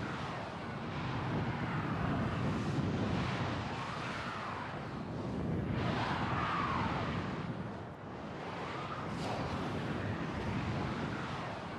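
A hovering vehicle's engine hums steadily.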